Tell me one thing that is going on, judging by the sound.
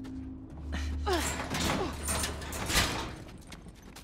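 A teenage girl speaks with animation close by.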